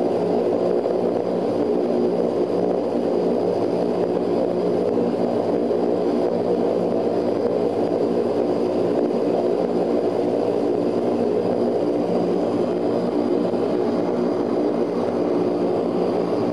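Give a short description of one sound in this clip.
Propeller engines drone loudly and steadily from close by.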